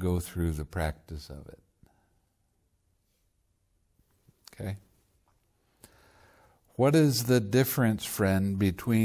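An elderly man speaks calmly and warmly into a close microphone, pausing now and then.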